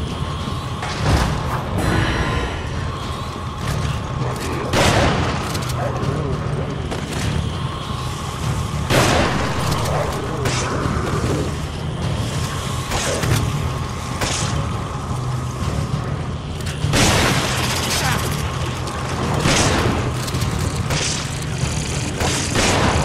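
Gunshots crack now and then.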